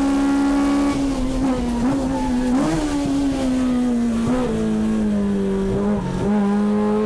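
A racing car engine's pitch dips and surges as the gears shift through corners.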